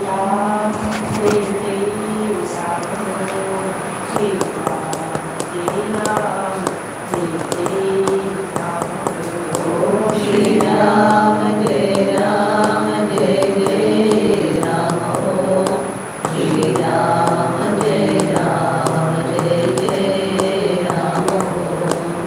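An elderly man chants slowly in a low, steady voice close by.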